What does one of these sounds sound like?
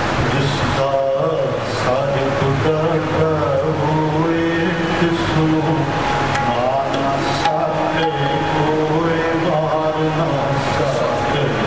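Tabla drums beat a rhythm.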